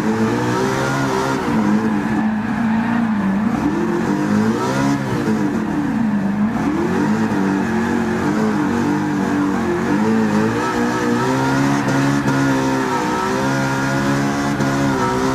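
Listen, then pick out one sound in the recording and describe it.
A car engine roars, revving up and down as gears shift.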